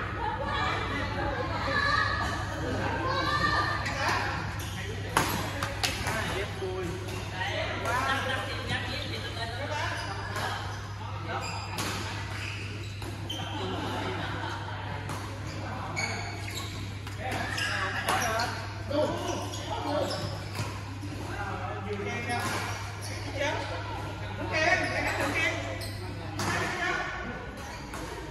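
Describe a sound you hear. Men talk and call out across the hall.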